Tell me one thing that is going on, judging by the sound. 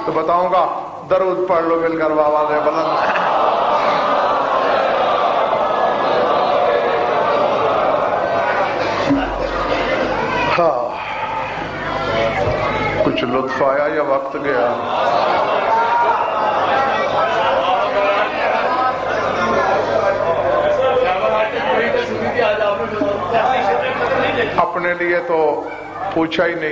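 A man speaks passionately into a microphone, heard through loudspeakers.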